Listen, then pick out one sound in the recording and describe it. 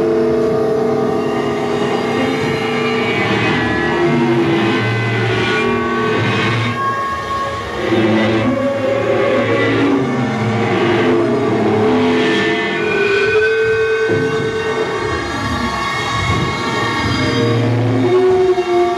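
Electronic sounds hum and warble from a synthesizer.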